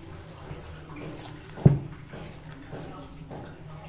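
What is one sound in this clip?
Hands squelch and squish through a soft, wet mixture.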